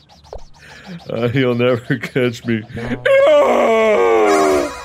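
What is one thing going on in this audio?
A young man exclaims loudly and with animation into a microphone.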